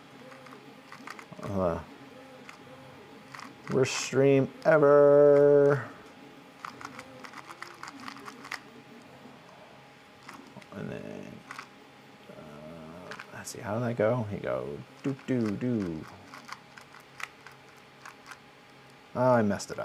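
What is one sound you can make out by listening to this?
Small plastic pieces click as a puzzle cube is twisted.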